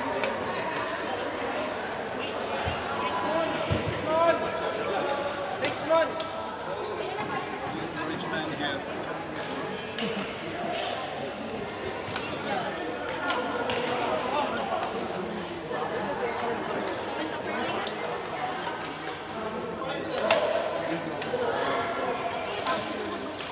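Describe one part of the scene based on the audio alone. Shuttlecocks are struck with rackets in sharp pops.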